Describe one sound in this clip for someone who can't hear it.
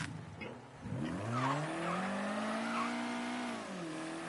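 A car engine revs up and accelerates.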